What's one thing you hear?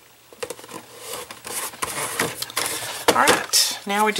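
Cardboard rustles and scrapes as it is handled.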